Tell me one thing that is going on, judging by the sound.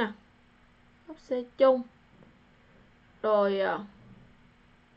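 A woman speaks briefly and calmly into a microphone.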